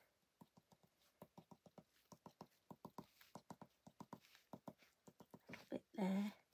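A pen taps quickly and lightly on paper.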